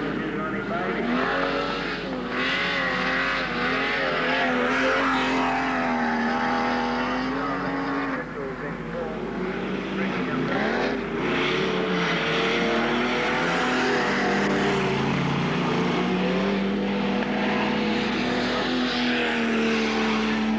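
Race car engines roar and rev up and down.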